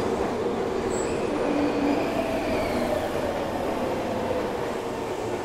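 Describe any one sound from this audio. Train brakes squeal as the train slows to a stop.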